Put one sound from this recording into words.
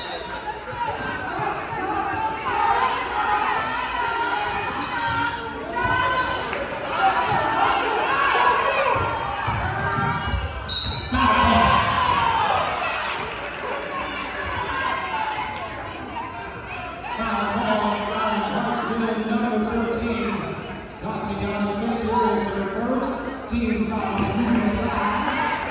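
Spectators talk and cheer throughout a large echoing gym.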